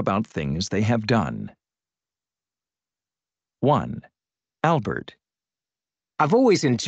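A man speaks calmly over an online call, in short phrases with long pauses.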